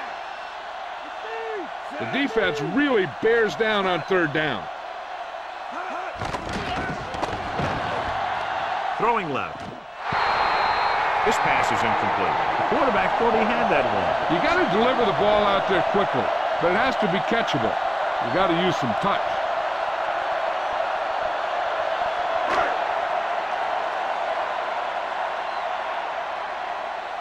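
A stadium crowd cheers and roars steadily, louder after a brief dip.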